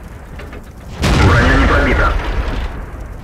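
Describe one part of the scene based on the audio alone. A tank cannon fires with a loud, sudden boom.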